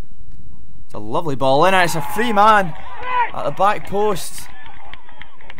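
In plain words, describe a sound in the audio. Young men shout and cheer outdoors at a distance.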